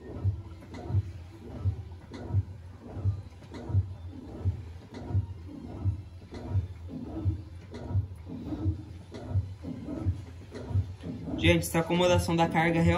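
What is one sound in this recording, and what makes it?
A washing machine agitates with a steady rhythmic thump.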